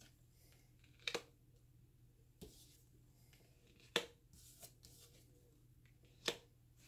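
Cards are laid down and slid onto a cloth-covered table with soft taps and rustles.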